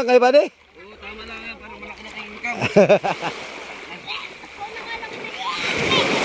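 A man wades through shallow sea water, splashing.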